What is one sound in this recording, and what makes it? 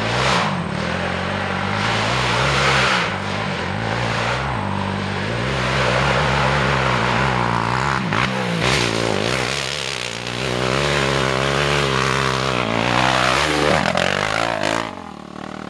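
A quad bike engine revs and roars as it approaches and passes close by.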